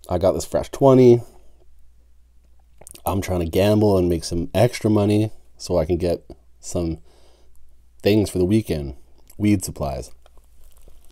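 A man speaks close to a microphone, calmly and with pauses.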